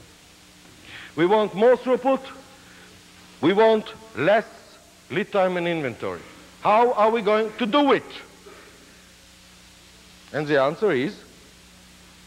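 An elderly man speaks with animation into a microphone, close by.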